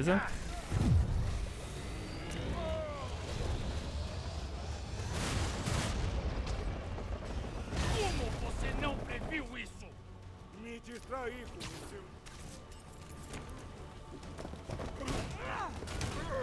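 Heavy blows and crashes thud during a fight.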